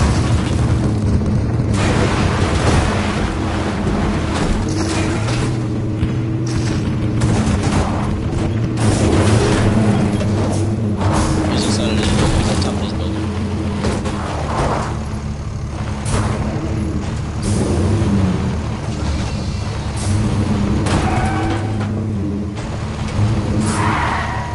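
A vehicle engine hums steadily and loudly throughout.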